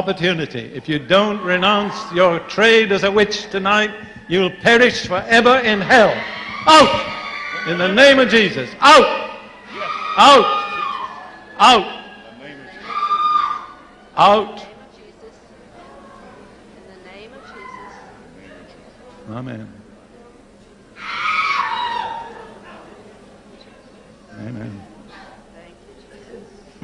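An elderly man preaches forcefully into a microphone.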